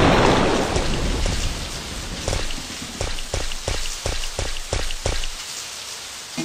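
Footsteps tap on hard ground.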